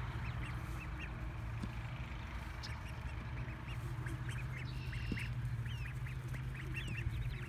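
Young ducks peep and chirp in short, high calls.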